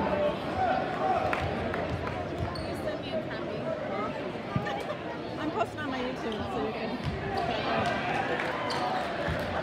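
A large crowd chatters and murmurs in an echoing gymnasium.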